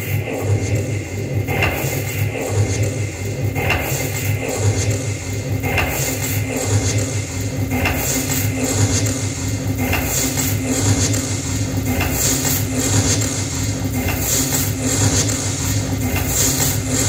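Electronic music plays through loudspeakers with a pulsing low beat and sharp hits every two seconds.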